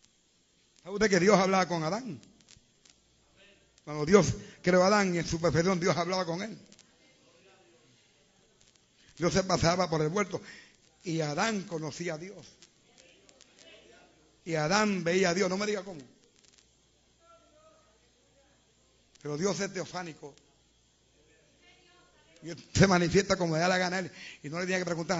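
A man preaches loudly and with animation through a microphone, in bursts with pauses.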